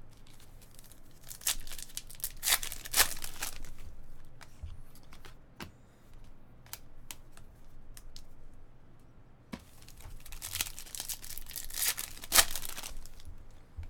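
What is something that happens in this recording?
A foil wrapper crinkles and rips open.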